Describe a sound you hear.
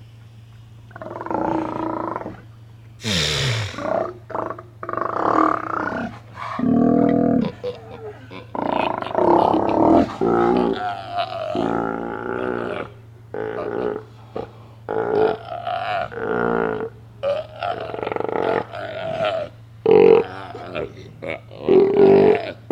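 Sea lions roar and bellow loudly, close by.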